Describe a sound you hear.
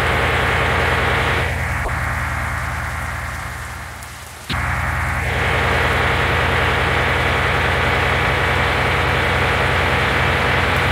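A truck engine rumbles steadily at speed.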